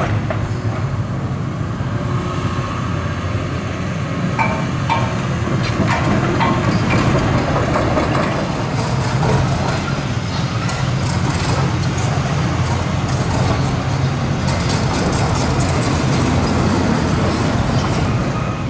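Metal clanks and scrapes as an excavator tears at a steel frame.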